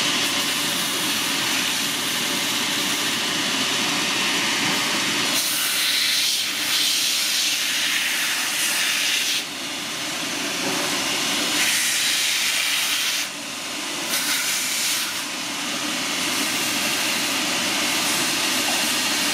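A grinding machine's wheels spin with a steady whirring hum.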